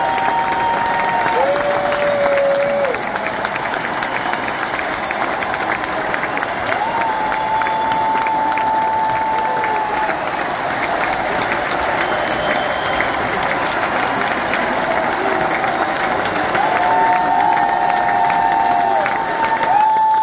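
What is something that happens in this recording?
A crowd claps along.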